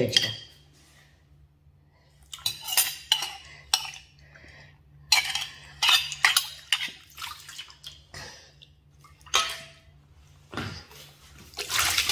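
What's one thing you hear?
A small bowl clinks and scrapes against a metal bowl.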